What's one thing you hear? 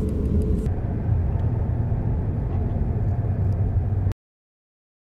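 A car drives along with a low, steady rumble from the road.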